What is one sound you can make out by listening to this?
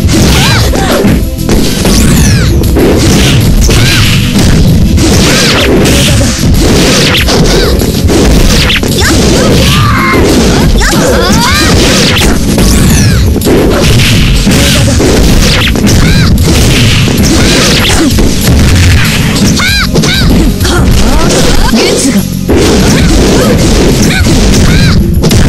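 A crowd cheers loudly throughout.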